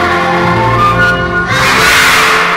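A children's choir sings in an echoing hall.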